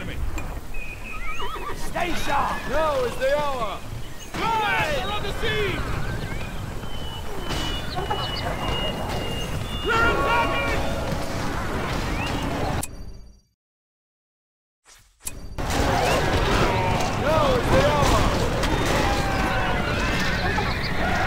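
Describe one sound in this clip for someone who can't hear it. Horses' hooves thunder over the ground.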